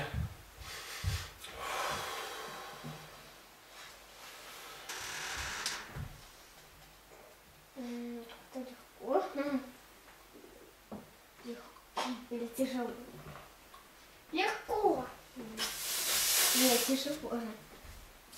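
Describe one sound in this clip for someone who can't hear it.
A man breathes out hard and loudly as he lifts.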